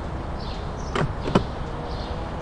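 A van door clicks open.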